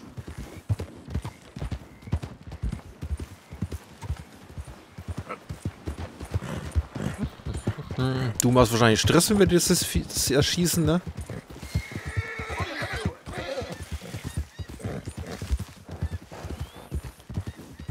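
A horse's hooves thud steadily on the ground.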